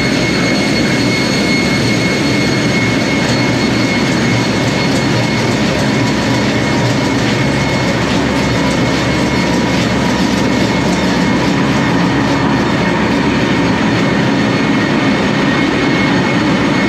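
A high steady whine sounds over the engine roar.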